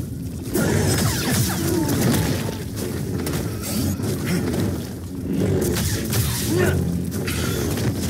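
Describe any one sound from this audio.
Blows land with heavy thuds and crackles.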